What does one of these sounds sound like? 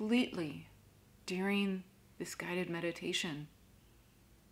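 A young woman speaks softly and calmly, close to a microphone.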